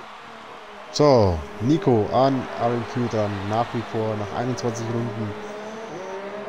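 Racing car engines roar up close, revving sharply in quick bursts.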